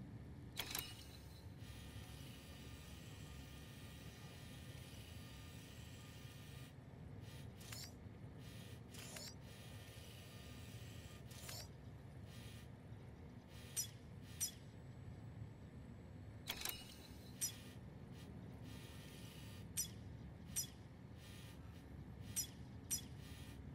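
Short electronic blips chime as a menu cursor moves.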